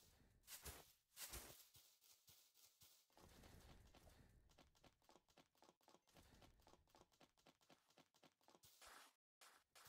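Quick footsteps patter on a hard surface.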